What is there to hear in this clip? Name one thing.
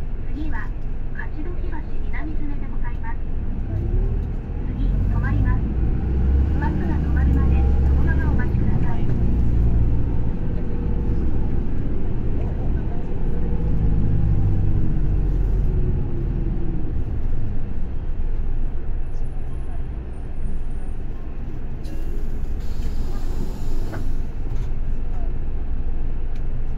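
A bus engine rumbles low and steady as the bus drives along.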